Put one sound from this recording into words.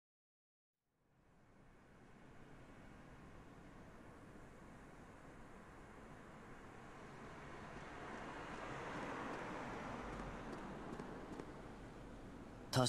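Traffic rumbles steadily past with a hollow echo.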